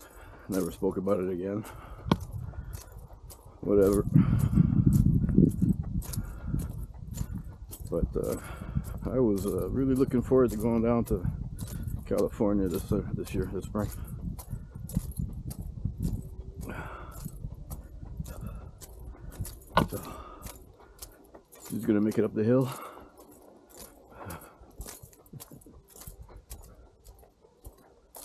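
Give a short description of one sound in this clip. Footsteps tap steadily on a paved path.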